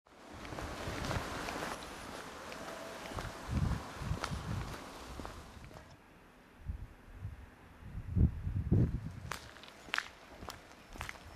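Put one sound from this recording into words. A car drives along, its tyres rumbling on the road.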